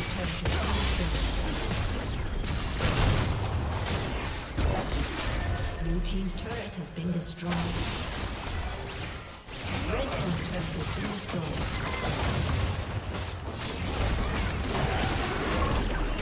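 Video game spells and weapon hits clash in a busy battle.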